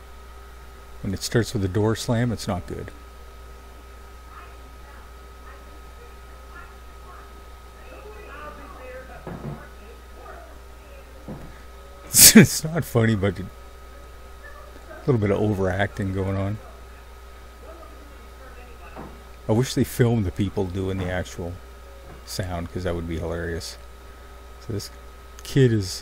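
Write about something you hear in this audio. A man talks into a close microphone in short bursts, with pauses between.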